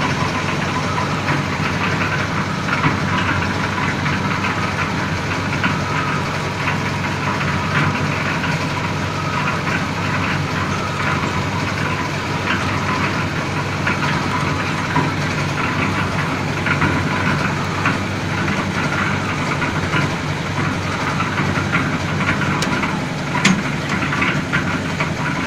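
A cement mixer's engine runs with a steady, rattling rumble.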